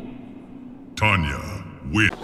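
A heavy kick lands with a thud.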